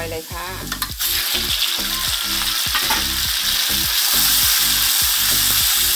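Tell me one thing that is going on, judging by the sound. Raw meat hisses loudly as it drops into hot oil.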